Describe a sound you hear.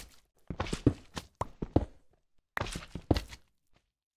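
Stone blocks crunch as they are dug out with a pickaxe.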